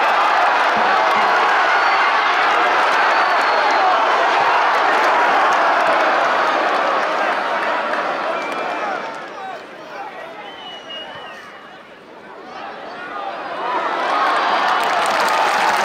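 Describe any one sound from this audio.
A large crowd cheers and chants loudly in a stadium, growing quieter for a while and then swelling again.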